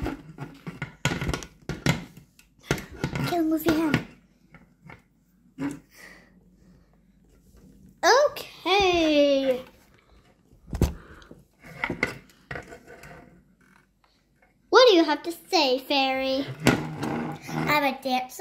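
Plastic toys knock and tap against a wooden floor.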